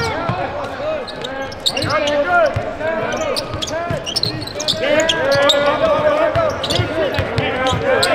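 A basketball bounces on the court with dull thumps.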